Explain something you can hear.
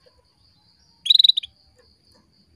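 A small bird chirps in a quick, bright burst close by.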